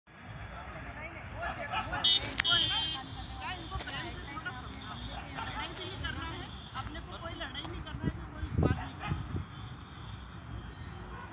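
Men and women shout and talk excitedly outdoors, some nearby and some farther off.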